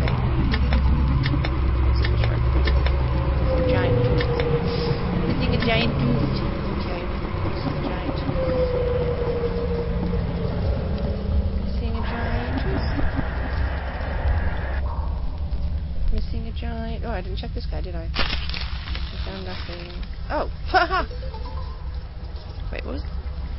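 A young woman talks calmly and closely into a microphone.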